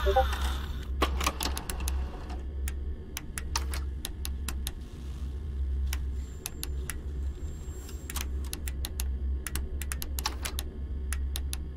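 Game menu interface clicks tick as options are selected.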